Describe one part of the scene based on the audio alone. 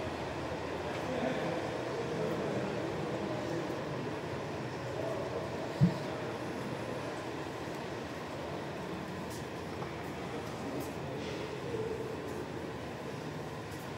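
A crowd of visitors murmurs in a large echoing hall.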